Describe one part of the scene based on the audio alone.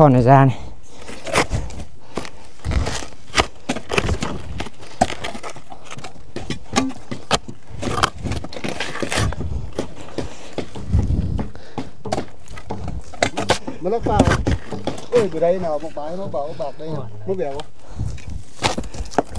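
A shovel scrapes into loose dirt.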